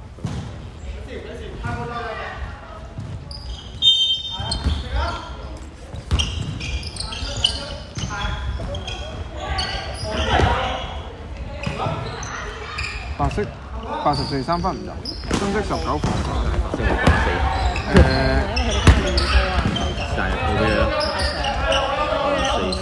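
Men call out and talk nearby with animation.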